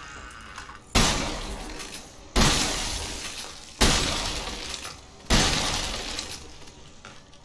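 A shotgun fires four loud blasts, each ringing out and fading.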